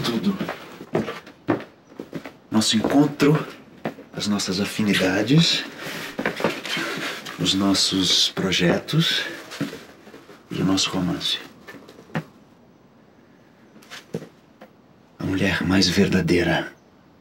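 A man speaks softly and warmly up close.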